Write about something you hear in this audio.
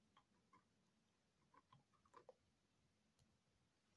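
A playing card taps softly as it is set down on a table.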